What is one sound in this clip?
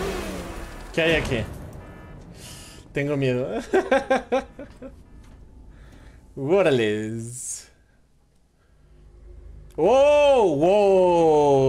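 A man talks and exclaims with animation close to a microphone.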